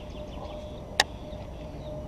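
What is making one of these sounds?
A fishing reel's bail snaps shut with a sharp click.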